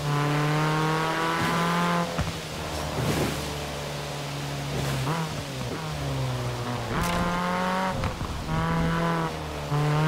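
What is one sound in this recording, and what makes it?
A car engine roars at high revs, its pitch dropping with each gear change.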